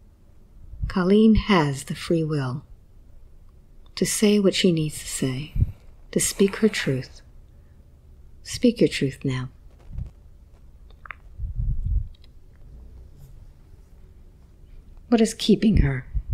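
A woman speaks slowly and calmly in short phrases, close to a microphone.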